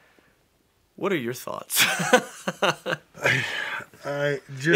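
Two men laugh together close by.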